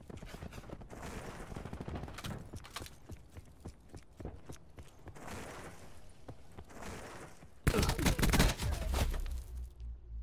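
Quick footsteps run across hard ground.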